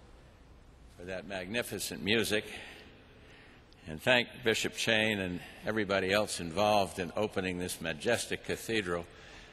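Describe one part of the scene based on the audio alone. An elderly man speaks calmly into a microphone in a large echoing hall.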